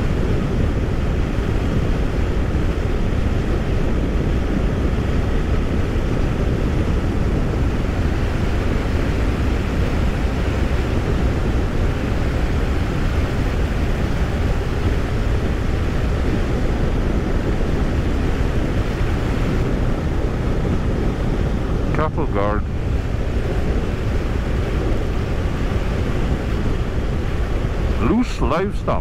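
A motorcycle engine hums steadily while cruising.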